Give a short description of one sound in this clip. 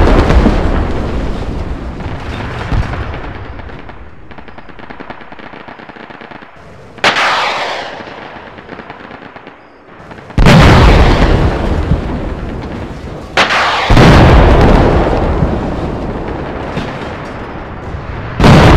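Fires crackle and roar.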